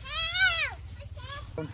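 A cow bellows loudly.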